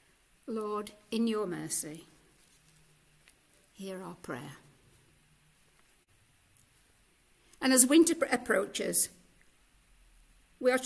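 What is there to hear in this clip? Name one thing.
An elderly woman speaks slowly and calmly through a microphone, pausing between phrases.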